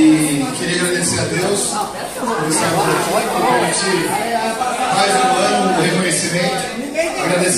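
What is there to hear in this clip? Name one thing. A crowd of men and women talk and cheer excitedly nearby.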